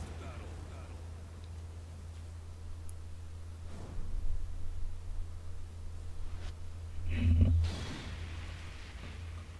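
A young man talks quietly into a microphone.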